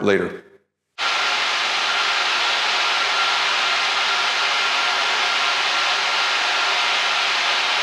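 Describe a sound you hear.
A floor grinder whirs steadily as it grinds a concrete floor.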